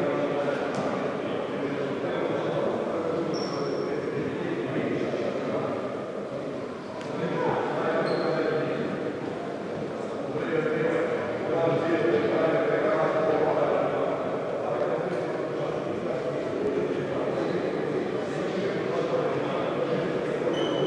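Men talk over one another in a large echoing gym.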